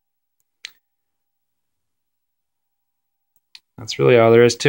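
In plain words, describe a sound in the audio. A remote control button clicks.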